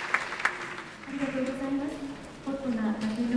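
A man speaks calmly in a large hall.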